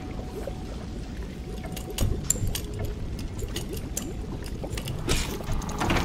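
A lockpick clicks and scrapes in a lock.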